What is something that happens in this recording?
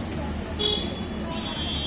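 A metal ladle clinks against a pot.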